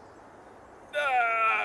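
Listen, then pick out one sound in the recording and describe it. A young man lets out a loud groan.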